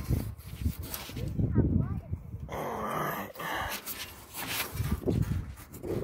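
Bundled wires rustle and scrape as hands tug at them, close by.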